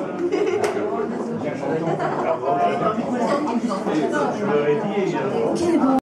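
An electric guitar plays live.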